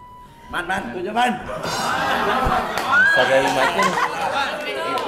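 Young men and women laugh together close by.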